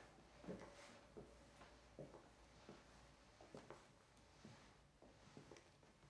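Footsteps thud slowly and evenly on a hard floor.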